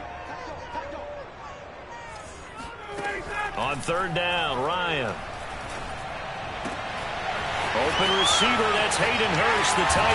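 A large stadium crowd roars, growing louder toward the end.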